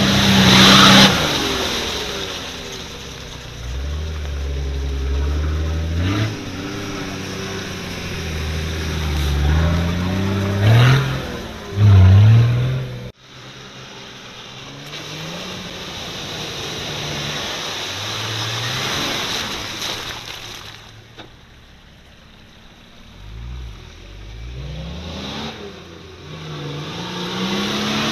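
An off-road engine revs and roars, rising and falling in pitch.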